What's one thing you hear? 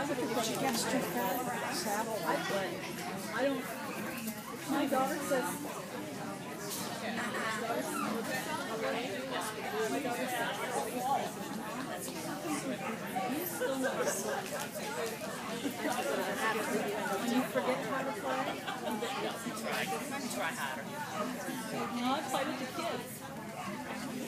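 Several adults chatter all around in a large echoing hall.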